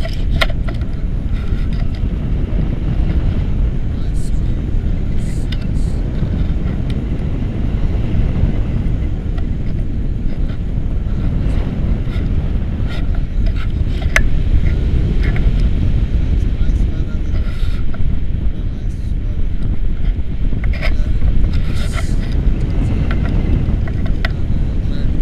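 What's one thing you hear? Strong wind rushes and buffets loudly against a microphone.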